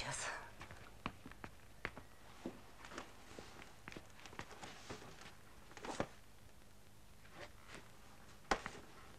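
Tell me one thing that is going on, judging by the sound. A woman rummages through a shelf, with objects knocking and clicking.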